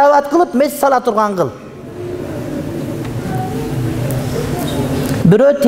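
A middle-aged man speaks emphatically into a microphone.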